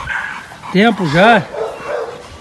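A dog lets out two loud, high whining yelps close by.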